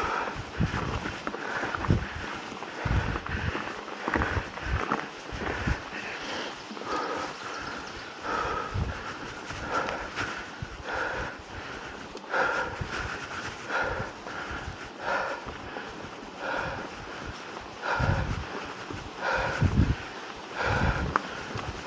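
Mountain bike tyres roll and crunch over a dirt trail covered in dry leaves.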